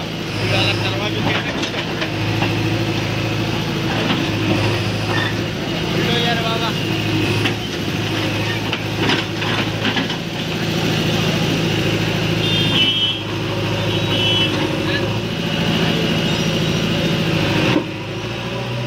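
A backhoe's diesel engine rumbles steadily close by.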